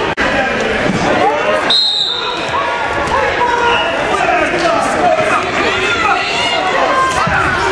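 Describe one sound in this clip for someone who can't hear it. A crowd of spectators shouts and cheers loudly in an echoing gym.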